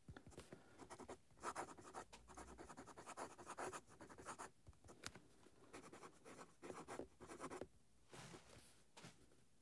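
A fountain pen nib scratches softly across paper.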